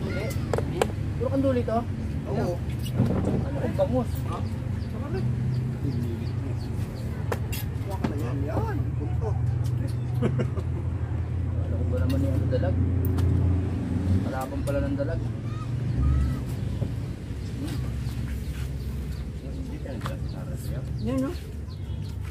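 Several young men talk casually close by.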